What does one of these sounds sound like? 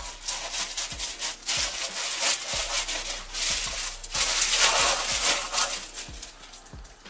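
A cardboard card rustles and crinkles in a hand.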